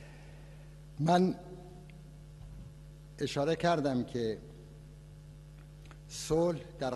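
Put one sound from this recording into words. An older man speaks slowly and calmly into a microphone.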